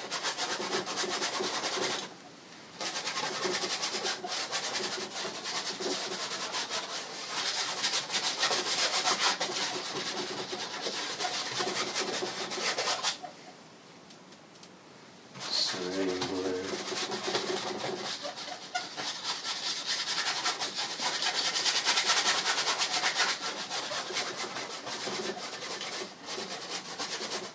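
A paintbrush scrapes and dabs softly on canvas.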